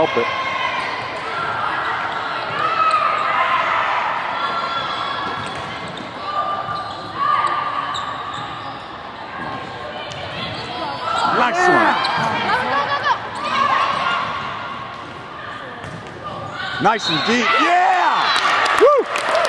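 A crowd of voices chatters and calls out in a large echoing gym.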